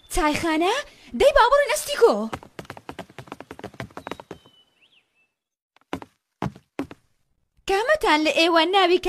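A young boy speaks with animation, close by.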